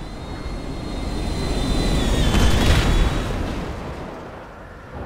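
A plane crashes with a loud explosion.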